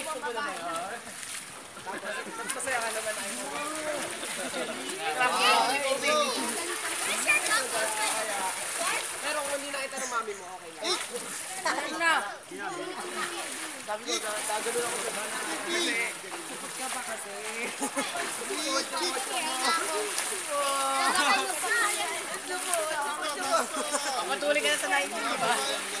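Water splashes steadily from a fountain into a pool.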